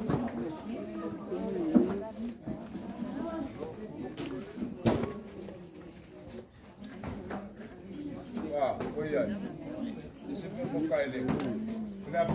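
A group of adult men and women chatter and call out nearby outdoors.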